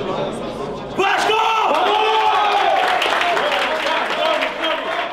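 A man shouts with passion up close.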